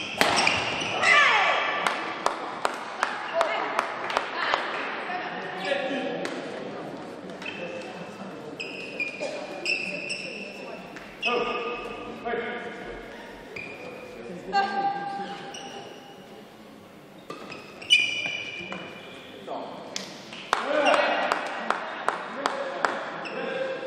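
Sports shoes squeak on a court floor.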